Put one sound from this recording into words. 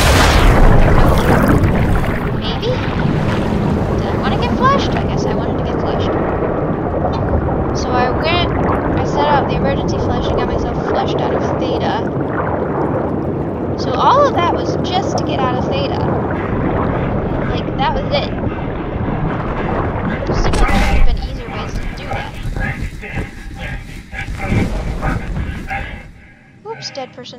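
Bubbles gurgle and rush underwater.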